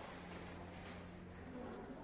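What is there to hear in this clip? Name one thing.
A plastic sheet crinkles as it is handled.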